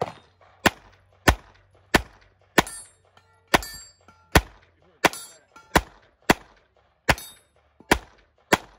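A handgun fires sharp shots in a quick, steady series outdoors.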